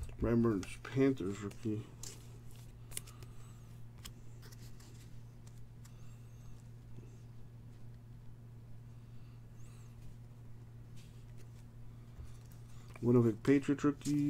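Trading cards rustle and click softly as hands shuffle them.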